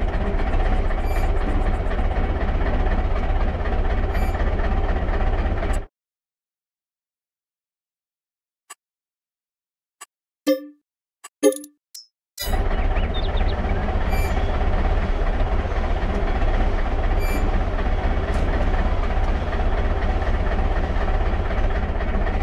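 A tractor engine idles with a low, steady rumble.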